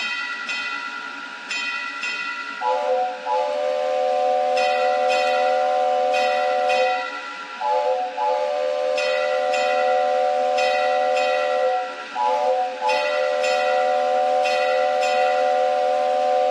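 A bell clangs in steady, repeated strokes.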